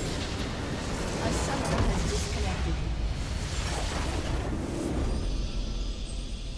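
Game spell effects burst and crackle loudly.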